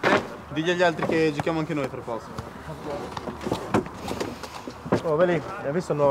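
Wooden chairs scrape and knock as people sit down.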